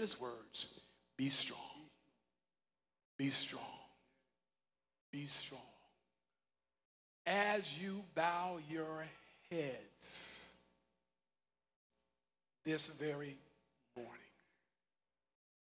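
A man preaches into a microphone in short, forceful phrases, echoing in a large hall.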